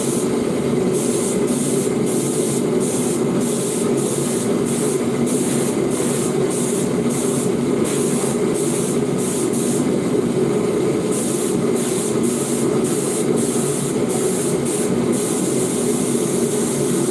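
An air-fed spray gun hisses as it sprays paint in short bursts.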